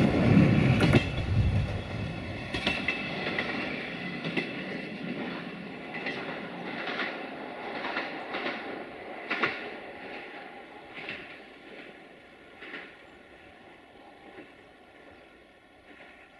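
A train rolls away into a tunnel and fades.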